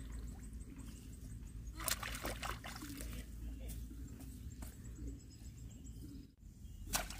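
Hands squelch and splash in shallow muddy water.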